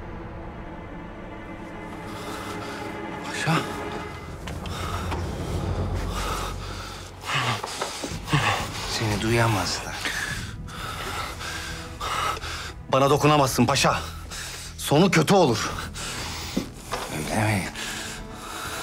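A man speaks tensely and angrily up close.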